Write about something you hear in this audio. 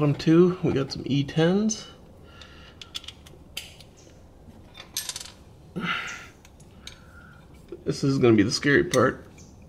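A ratchet wrench clicks on a bolt.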